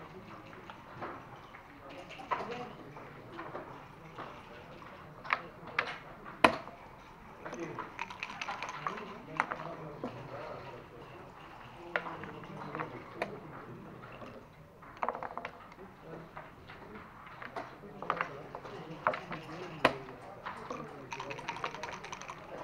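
Backgammon checkers click and clack against a wooden board.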